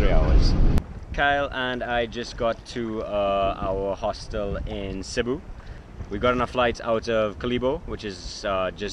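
A man talks calmly and close up outdoors.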